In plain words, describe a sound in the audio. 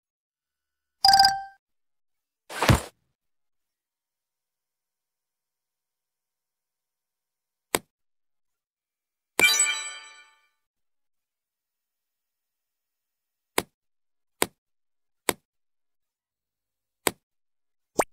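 A mobile game plays short electronic clicks and chimes.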